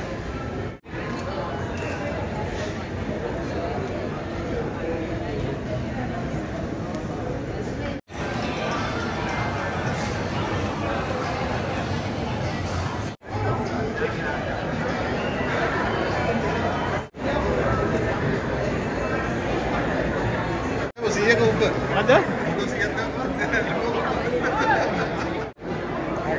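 A crowd chatters in a large indoor hall.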